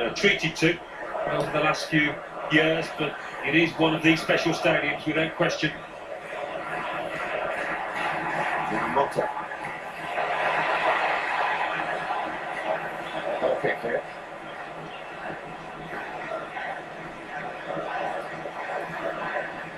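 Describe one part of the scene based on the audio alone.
A stadium crowd murmurs and swells through a small loudspeaker.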